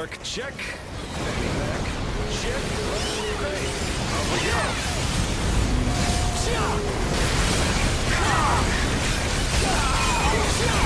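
Loud crashing blows and blasts of a fierce fight rumble on.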